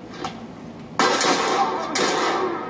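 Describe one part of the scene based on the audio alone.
Gunshots ring out loudly in quick bursts.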